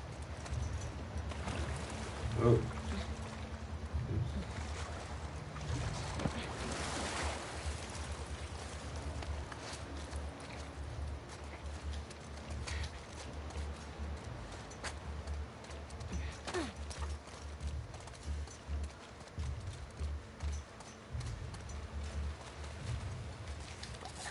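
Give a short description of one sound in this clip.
A man speaks quietly close to a microphone.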